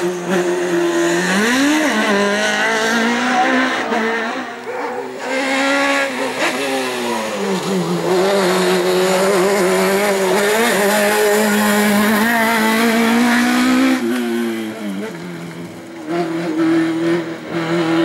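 A rally car engine revs hard, rising and falling in pitch as the car speeds past.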